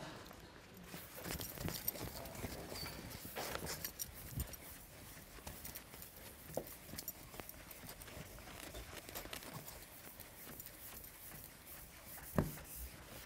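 A board eraser rubs steadily across a chalkboard.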